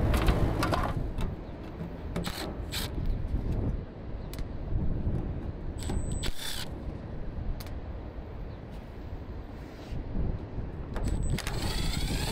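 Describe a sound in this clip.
A cordless drill whirs in short bursts, driving screws.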